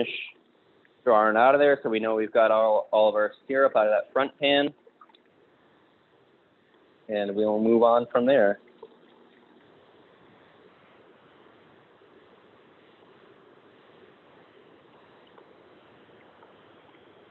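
Syrup trickles from a valve into a metal pot.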